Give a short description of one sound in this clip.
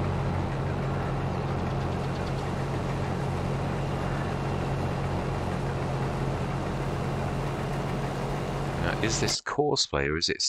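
A combine harvester engine hums steadily while threshing crops.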